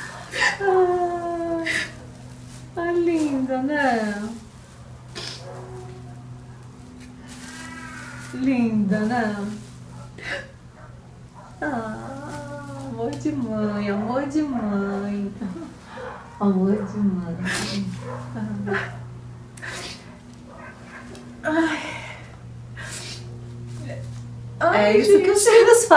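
A middle-aged woman talks and laughs warmly close by.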